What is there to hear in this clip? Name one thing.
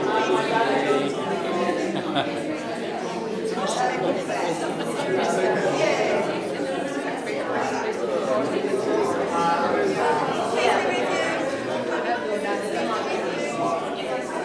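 An elderly man talks and laughs cheerfully nearby.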